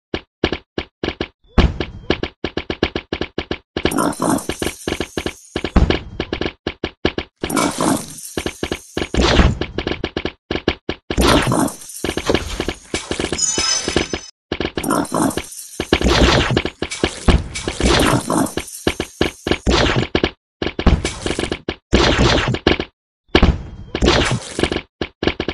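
Game plants shoot rapid popping shots at approaching zombies.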